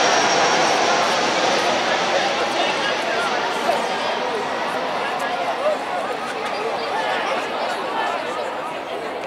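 Soccer players shout to each other across the field.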